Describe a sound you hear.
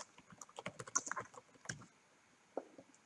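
Keys clatter quickly on a keyboard.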